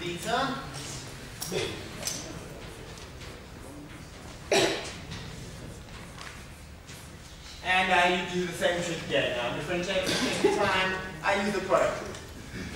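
A young man lectures calmly in an echoing room.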